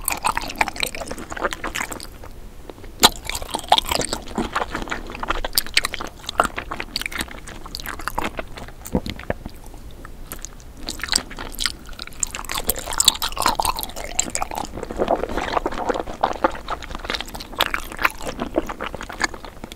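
Soft candy squishes crisply between fingers.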